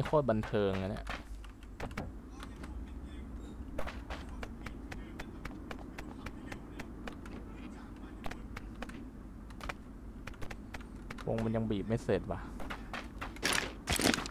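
Footsteps crunch quickly on gravel and dirt.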